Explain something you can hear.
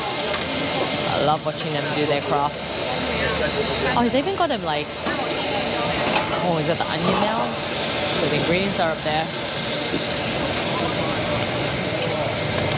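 A metal spatula scrapes and clatters on a griddle.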